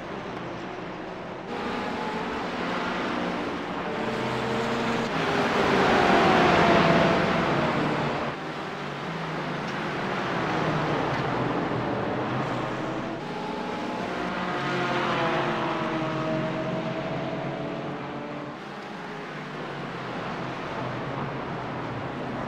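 Racing car engines roar and whine as they pass.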